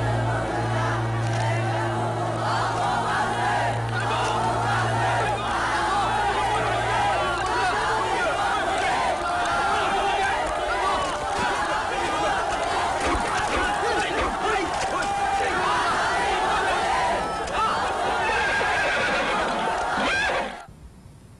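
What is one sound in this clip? A large crowd of young men shouts and chants loudly outdoors.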